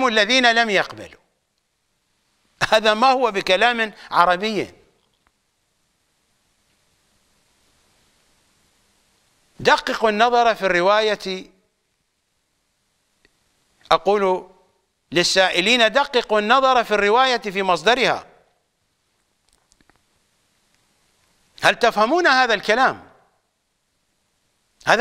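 An elderly man speaks with animation into a close microphone, with long pauses.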